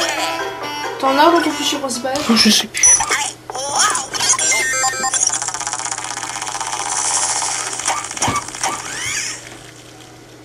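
Chiming, warbling electronic game music plays through a television speaker.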